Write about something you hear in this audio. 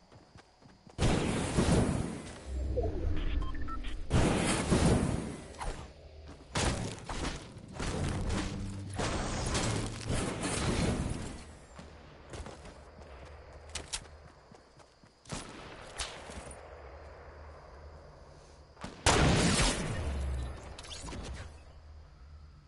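Loud game sounds of smashing and building crash out in bursts.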